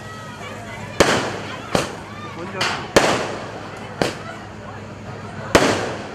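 Fireworks crackle and fizz as sparks fall.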